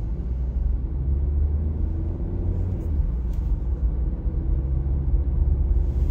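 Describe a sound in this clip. Tyres roll along the road.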